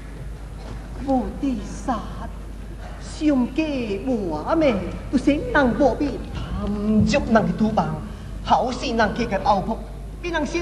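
A man speaks in a sing-song, declaiming voice with animation.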